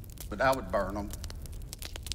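A middle-aged man speaks through a microphone.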